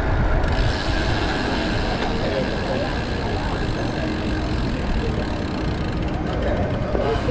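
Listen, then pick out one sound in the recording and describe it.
Wind rushes steadily past a moving bicycle.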